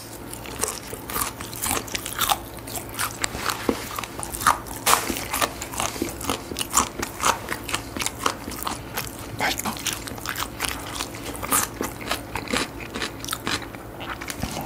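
A man chews crunchy fried food loudly and closely into a microphone.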